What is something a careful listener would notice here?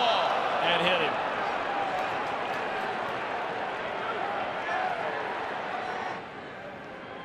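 A large crowd cheers and roars outdoors, then quiets down.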